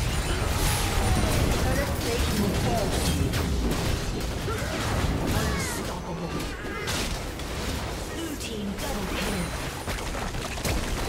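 Game spells crackle and blast in a fast, busy fight.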